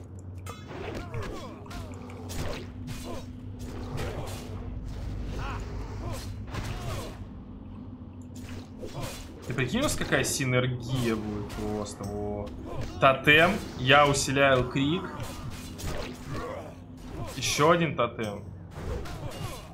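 Weapons clash and strike in a close fight.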